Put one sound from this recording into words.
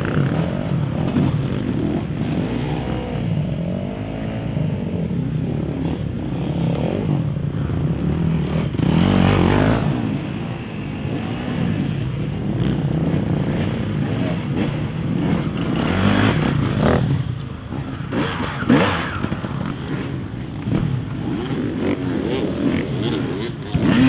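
Dirt bike engines rev loudly outdoors, rising and falling in pitch.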